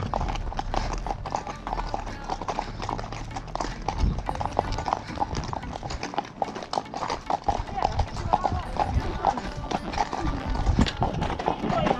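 Horse hooves clop steadily on a hard lane.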